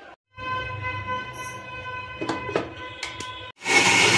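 A blender's button clicks.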